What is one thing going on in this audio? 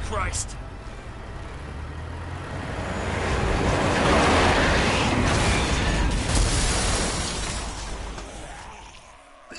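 Heavy truck engines roar and rumble.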